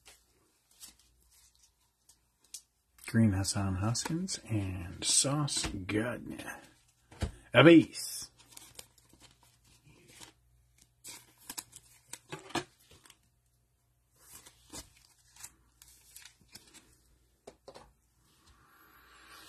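Trading cards slide and tap against each other as hands sort through them.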